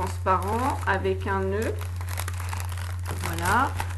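Plastic wrap crinkles close by.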